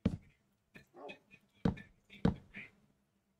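Wooden blocks knock as they are placed and chopped.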